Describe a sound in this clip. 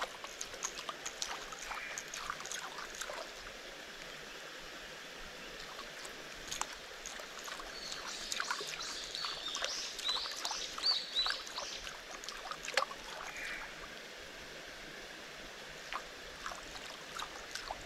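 A fishing reel whirs and clicks as it is wound in.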